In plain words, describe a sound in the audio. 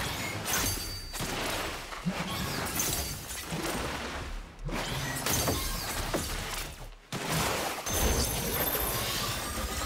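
Crackling energy effects buzz and zap.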